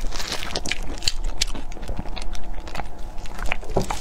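A young woman gulps water close to a microphone.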